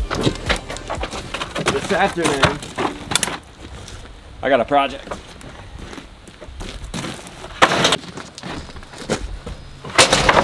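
Wooden pallets knock and clatter as they are lifted and stacked.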